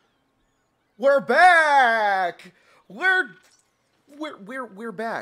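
A young man exclaims loudly and excitedly into a microphone, his voice rising and falling.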